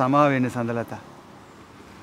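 A man speaks with emotion close by.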